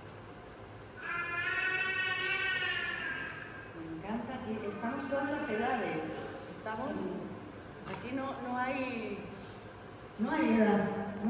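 A young woman sings into a microphone in a large echoing hall.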